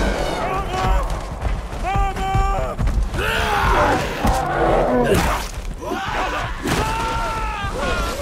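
Mammoths trumpet and bellow in loud, wavering calls.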